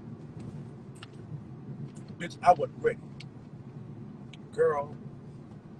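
A car engine hums low and steadily inside the car.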